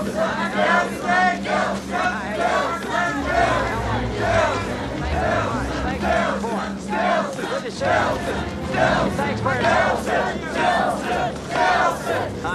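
A crowd of men and women shouts and cheers close by.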